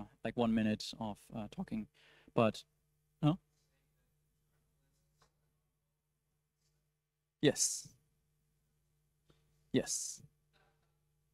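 A young man speaks through a microphone in short bursts, with long pauses.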